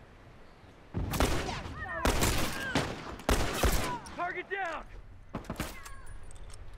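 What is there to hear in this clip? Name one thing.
Gunshots ring out in loud bursts, with a ringing echo after them.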